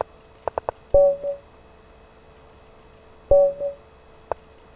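A short chime sounds twice.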